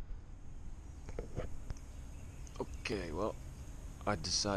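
A middle-aged man speaks close to a clip-on microphone.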